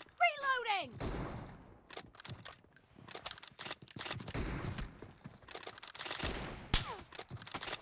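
Rifle shots crack and echo.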